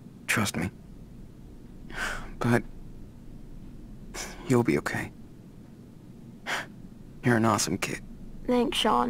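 A young man speaks softly and warmly, close by.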